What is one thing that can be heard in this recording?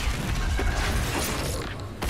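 Flames burst and roar in explosions.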